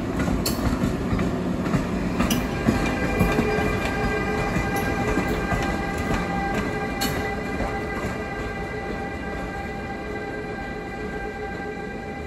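An electric locomotive rumbles along the rails and slowly fades as it moves away.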